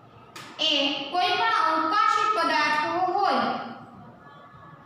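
A woman speaks clearly nearby, as if teaching.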